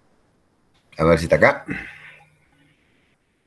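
An older man speaks briefly and loudly, close to a microphone on an online call.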